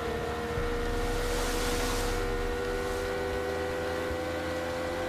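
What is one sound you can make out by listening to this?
Water splashes against the hull of a speeding boat.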